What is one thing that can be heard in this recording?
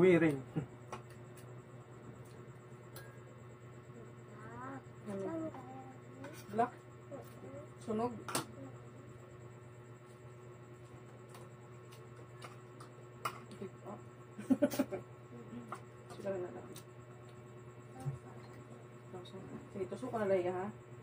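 Spoons clink against ceramic plates.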